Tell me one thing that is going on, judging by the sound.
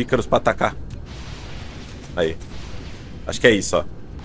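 Missiles launch with a rushing whoosh.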